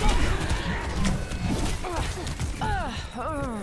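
Video game gunshots and blasts crackle rapidly.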